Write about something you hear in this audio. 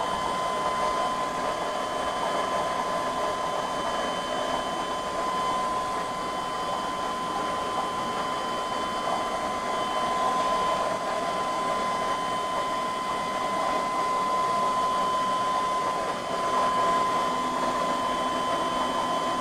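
Air bubbles gurgle steadily in an aquarium filter.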